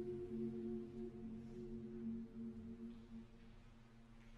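A mixed choir sings a sustained chord in a large echoing hall, then fades away.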